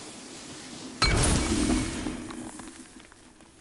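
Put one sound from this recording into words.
A fiery blast bursts with a loud whoosh and crackle.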